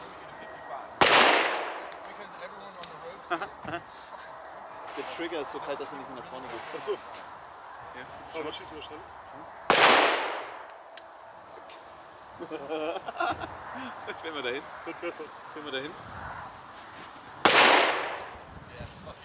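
A handgun fires loud single shots outdoors, each ringing out across open ground.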